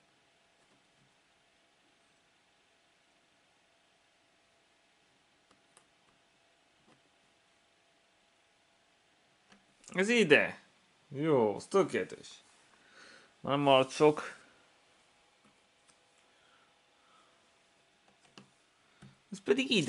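Jigsaw puzzle pieces tap softly against each other.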